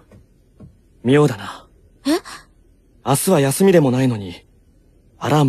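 A young girl speaks with animation, close by.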